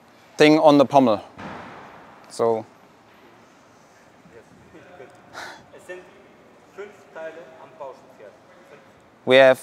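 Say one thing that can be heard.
A man talks and calls out nearby in a large echoing hall.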